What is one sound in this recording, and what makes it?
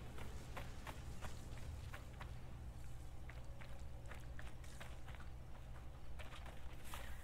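Footsteps crunch on stone and sand.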